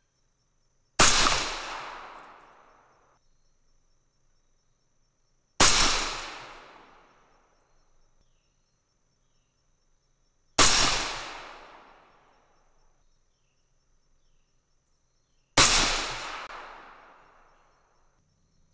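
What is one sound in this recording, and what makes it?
A rifle fires loud shots one at a time, each echoing and fading outdoors.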